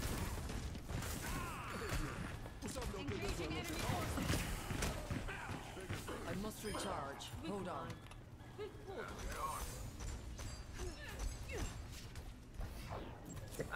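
Game weapons fire with sharp bursts and zaps.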